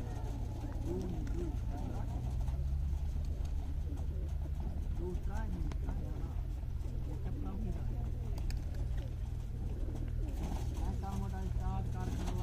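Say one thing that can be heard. A flock of ducks quacks and chatters nearby.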